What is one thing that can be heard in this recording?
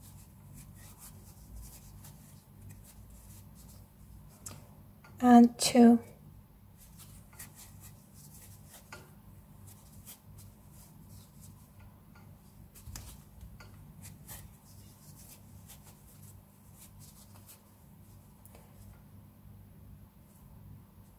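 A crochet hook softly rustles through thick cotton yarn.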